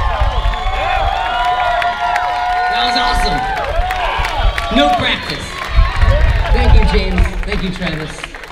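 A crowd cheers and whistles loudly outdoors.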